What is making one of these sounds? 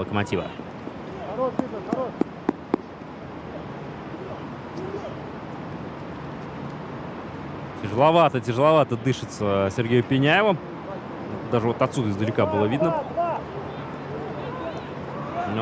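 Men's voices call out faintly across an open outdoor field.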